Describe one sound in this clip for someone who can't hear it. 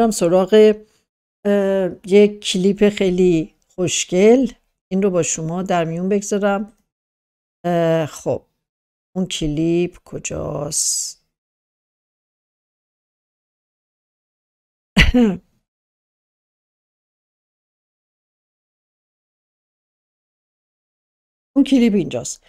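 A middle-aged woman speaks close to a microphone, with emotion and long pauses.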